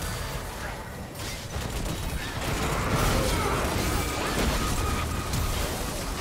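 Game sword strikes clash rapidly.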